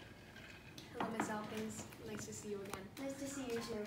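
A woman talks at a table nearby.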